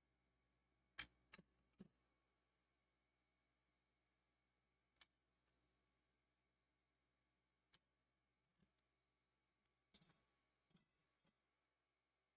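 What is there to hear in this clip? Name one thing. A circuit board knocks and clatters against a hard surface as it is handled.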